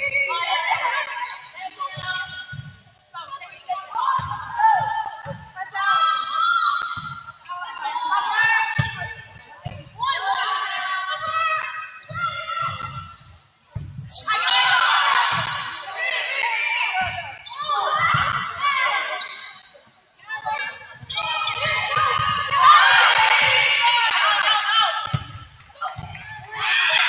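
A volleyball is struck with sharp slaps in a large echoing gym.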